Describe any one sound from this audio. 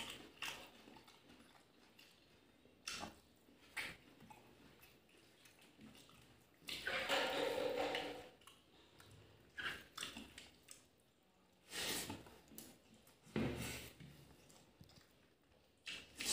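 Fingers squish and mix rice close by.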